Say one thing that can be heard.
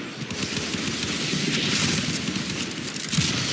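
Fiery explosions roar.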